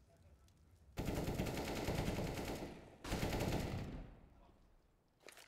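A sniper rifle fires loud shots that ring out and fade.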